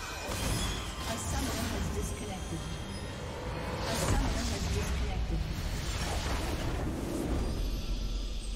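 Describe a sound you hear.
Game battle effects crash and blast rapidly.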